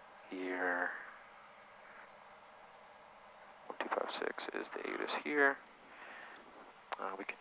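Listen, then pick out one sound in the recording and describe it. A man speaks calmly over a headset intercom.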